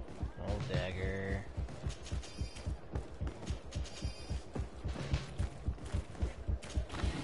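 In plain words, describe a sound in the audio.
Quick footsteps thud on the ground as someone runs.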